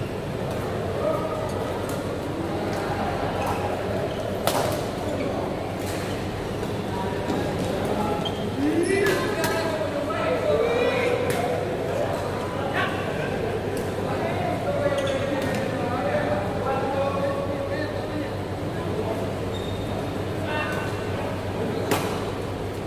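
Rackets smack shuttlecocks in sharp pops.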